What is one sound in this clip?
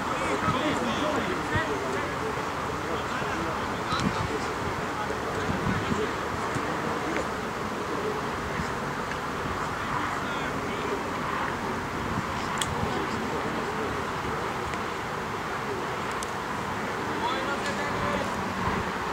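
Spectators chatter nearby.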